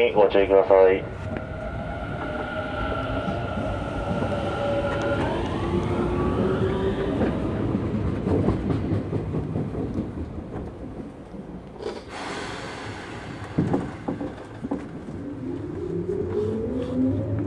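An electric train motor whines, its pitch sliding as the train changes speed.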